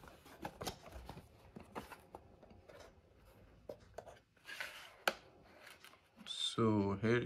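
Cardboard packaging rustles and scrapes as it is opened.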